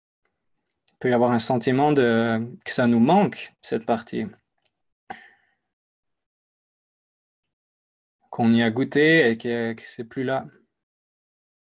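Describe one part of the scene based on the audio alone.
A young man speaks calmly and close to a microphone, in short phrases with pauses.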